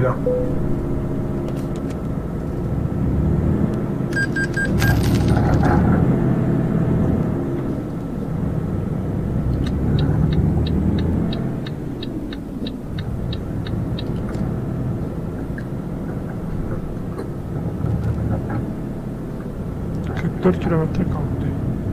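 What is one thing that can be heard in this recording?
A truck engine rumbles steadily, rising and falling with speed.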